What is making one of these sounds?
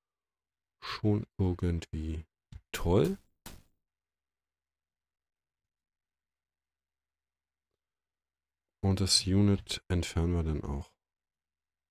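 A young man speaks calmly and close to a microphone, in short bursts.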